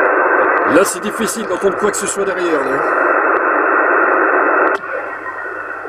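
Loud static hisses from a radio loudspeaker, then drops away sharply.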